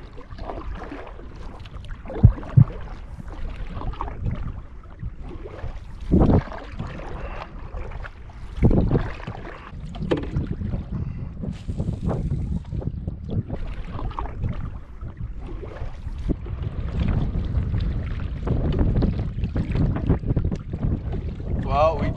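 Small waves lap against a canoe's hull.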